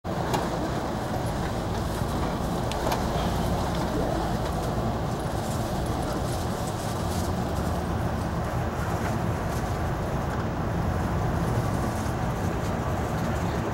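A train rumbles steadily along the rails and slows into a station.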